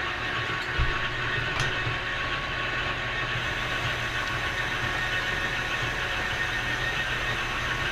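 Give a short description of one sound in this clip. A cutting tool scrapes steadily against spinning metal.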